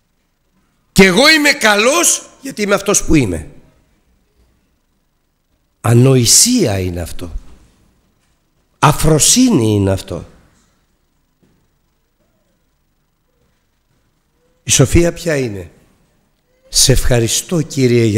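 A middle-aged man speaks emphatically into a microphone, with long pauses.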